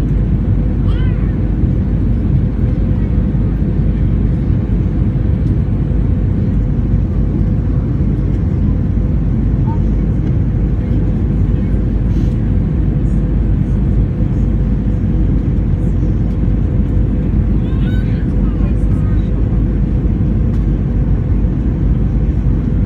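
Jet engines roar with a steady, deep rumble inside an airliner cabin.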